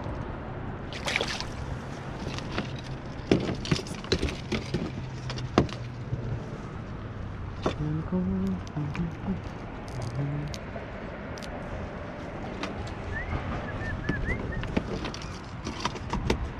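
Items knock and clatter on a kayak.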